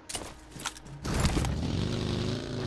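A small buggy engine hums as it drives off.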